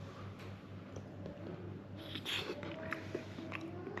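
A man chews food noisily.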